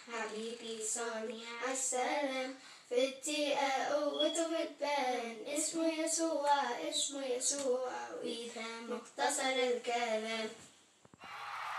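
Two young children sing together, close by.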